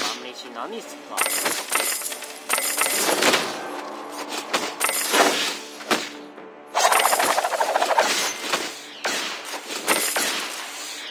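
Weapons clash and strike in quick bursts.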